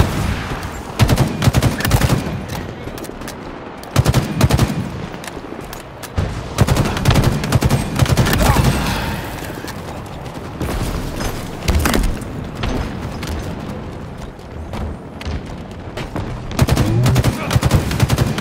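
Rapid rifle gunfire bursts out in loud volleys.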